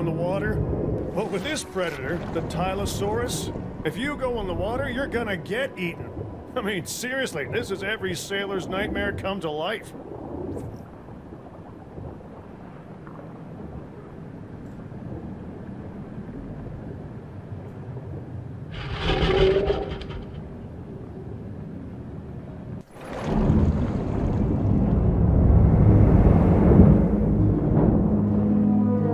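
Water swirls softly underwater.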